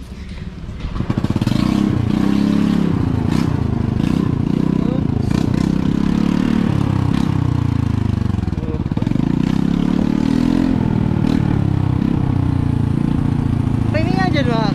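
A motorcycle engine runs steadily while riding.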